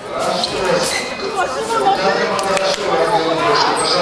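Fencing blades clash and click.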